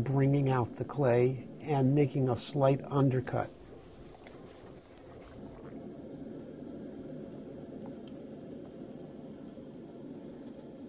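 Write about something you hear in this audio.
A potter's wheel whirs steadily.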